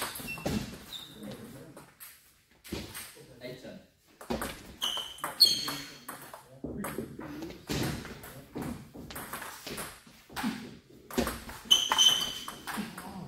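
A table tennis ball clicks back and forth between paddles and a table.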